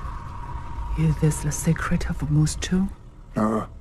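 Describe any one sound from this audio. A young woman asks a question in a low, tense voice.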